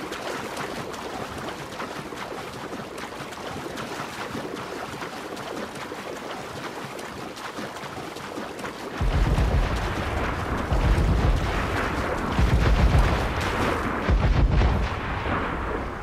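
Water splashes as a swimmer strokes through the waves.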